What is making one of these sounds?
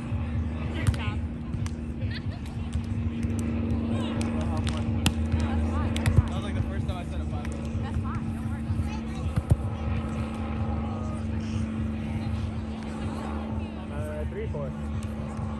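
Young men and women talk and call out at a distance.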